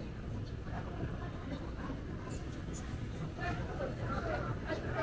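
Men and women chatter indistinctly in the background.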